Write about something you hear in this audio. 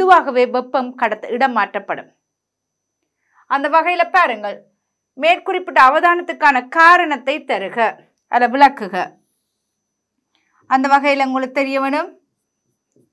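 A woman speaks calmly and clearly into a close microphone, in short phrases with pauses.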